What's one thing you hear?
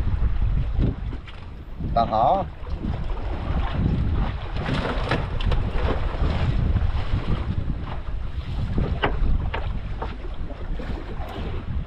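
Waves slap against the side of a small boat.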